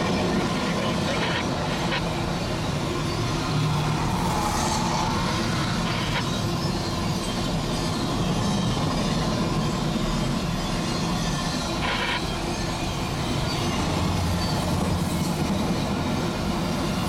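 A long freight train rumbles and clatters steadily past, close by.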